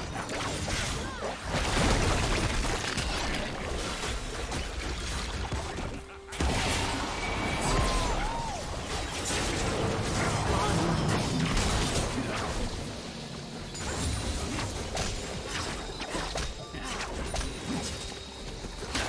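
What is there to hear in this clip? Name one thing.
Game impacts and blasts thud and burst rapidly.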